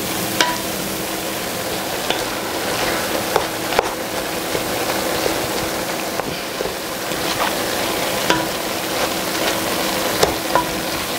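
A wooden spoon scrapes and knocks against a pan.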